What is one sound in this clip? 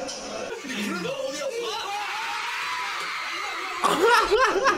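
A young man laughs and shouts with excitement, heard through a speaker.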